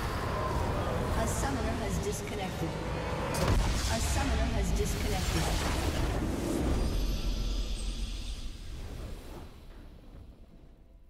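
Loud magical blasts and crashes of a video game battle ring out.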